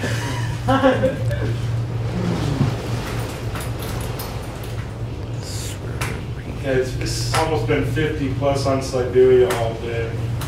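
A cable car hums steadily as it travels.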